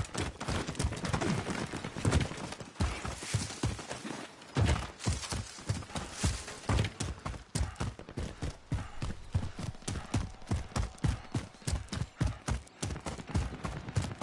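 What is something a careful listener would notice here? Footsteps run quickly over grass and gravel.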